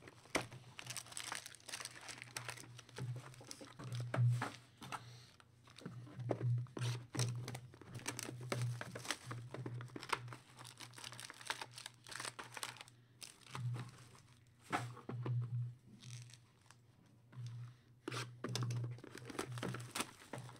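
Plastic wrap crinkles and rustles.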